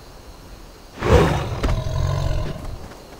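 A spell bursts with a loud whoosh and rumble.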